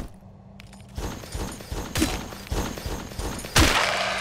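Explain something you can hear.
Heavy footsteps thud on a stone floor in an echoing space.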